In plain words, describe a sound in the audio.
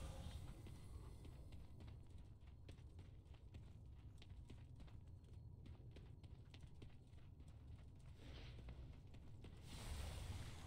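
Quick footsteps patter on stone.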